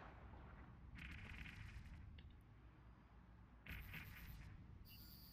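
Laser weapons fire in short hissing bursts.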